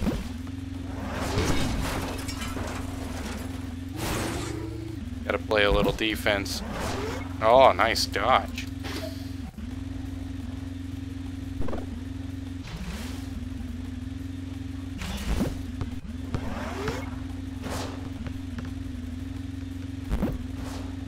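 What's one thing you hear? Electronic laser zaps fire in short bursts.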